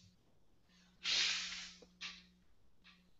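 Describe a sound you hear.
A boy blows his nose into a tissue.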